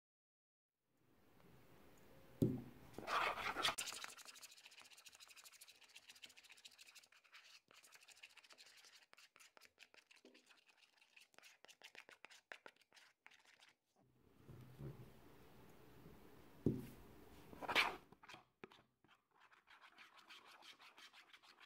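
A metal spoon stirs thick, sticky slime in a plastic bowl, squelching.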